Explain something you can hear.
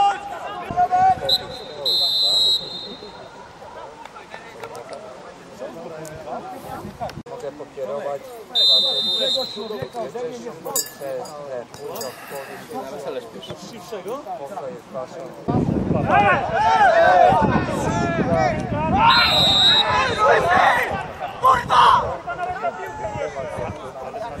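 Players shout to each other outdoors, from a distance.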